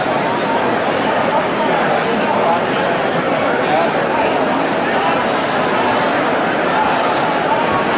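A large outdoor crowd murmurs and chatters loudly.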